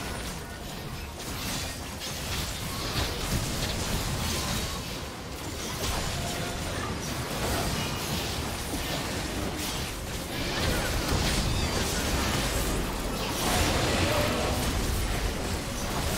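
Video game spell effects whoosh, crackle and thud during a battle.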